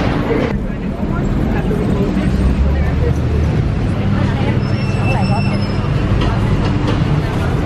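City traffic hums along a street.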